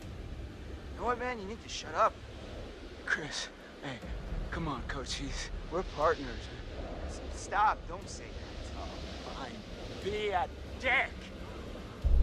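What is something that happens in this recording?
Young men talk tensely nearby.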